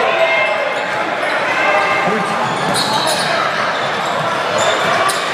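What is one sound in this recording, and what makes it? A crowd murmurs in an echoing gym.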